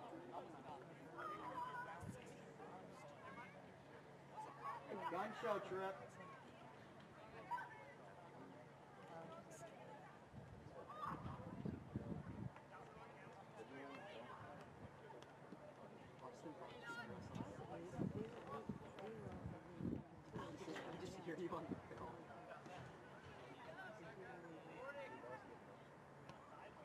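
Young players shout to each other across an open field outdoors.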